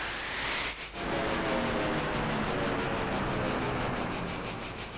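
A magical blast roars and sizzles.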